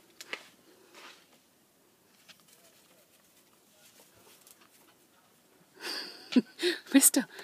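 A small dog's paws crunch softly through snow.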